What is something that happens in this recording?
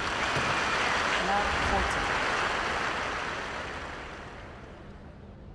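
A large crowd applauds and cheers.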